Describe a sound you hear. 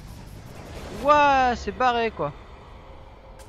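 A burst of magical energy roars.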